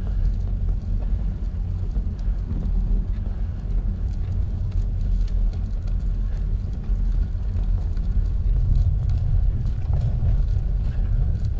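A car drives along a wet road with a steady low rumble.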